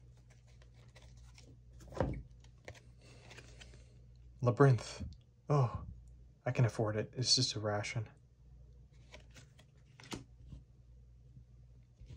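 Playing cards slide and tap against a table.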